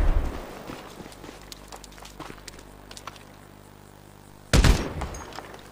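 A rifle fires loud, booming shots.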